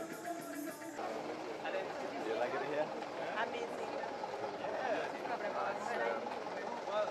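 A crowd of young men and women chatter outdoors close by.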